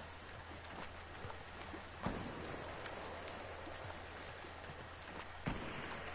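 Water splashes as a game character swims.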